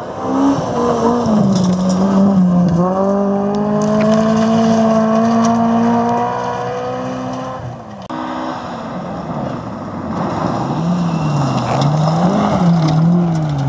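Gravel sprays and crackles under a car's tyres.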